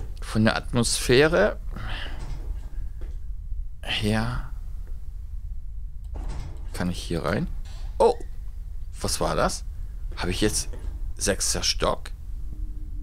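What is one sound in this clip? A young woman talks with animation through a close microphone, in bursts with pauses.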